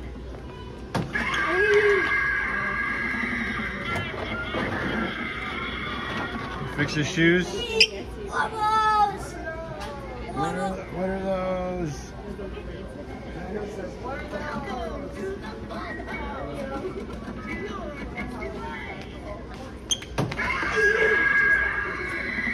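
An animatronic clown figure plays a loud, creepy laugh and music through a small speaker.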